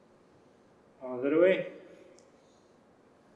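A man speaks a few words briefly.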